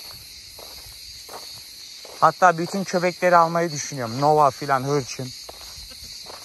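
A dog's paws patter on gravel.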